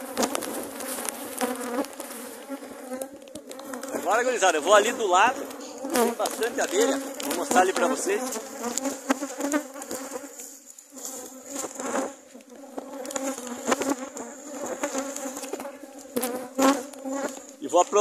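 Bees buzz loudly in a swarm close by.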